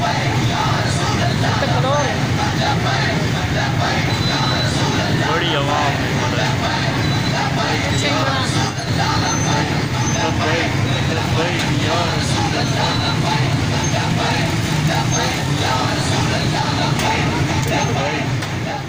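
A large crowd of men chants and shouts outdoors.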